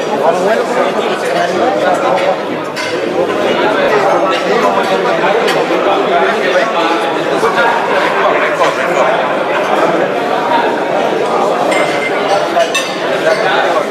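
A crowd of men chatter at tables in a large hall.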